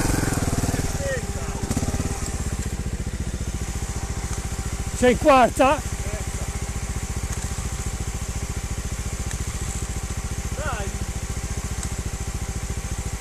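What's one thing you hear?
A motorcycle engine idles with a steady putter.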